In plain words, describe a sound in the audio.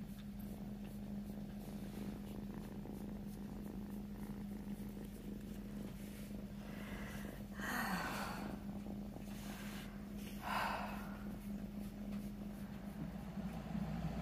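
A hand strokes and rubs a kitten's fur with a soft rustle.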